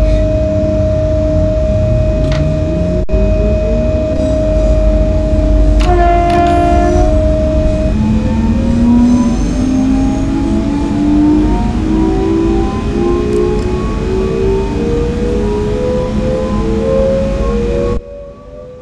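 An electric train motor whines, rising steadily in pitch as it speeds up.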